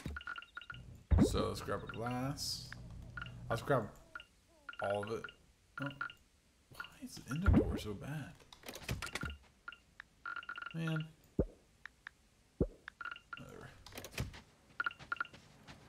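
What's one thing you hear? A young man talks casually and with animation, close to a microphone.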